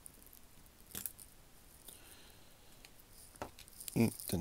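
A small plastic part clicks softly against a metal watch case.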